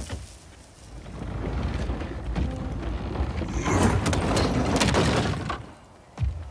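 A heavy wooden cart rolls and rumbles over wooden boards.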